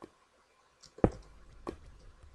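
Blocks of stone crunch and break.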